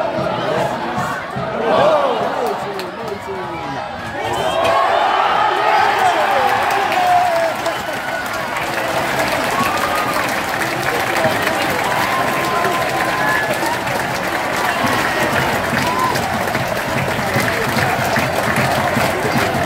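A large stadium crowd sings and chants loudly.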